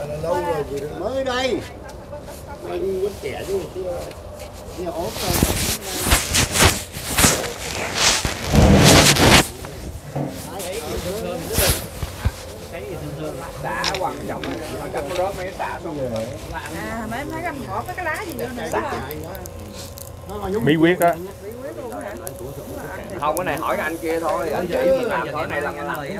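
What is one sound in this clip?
Several men and women talk and chatter nearby, outdoors.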